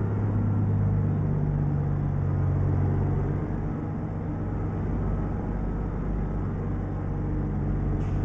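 A truck's diesel engine rumbles steadily, its pitch shifting as the truck drives on.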